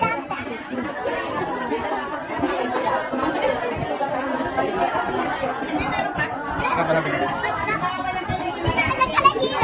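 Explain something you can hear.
A crowd of men and women chatter all around in an echoing room.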